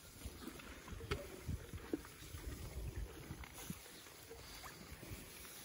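Ponies munch and rustle through dry hay.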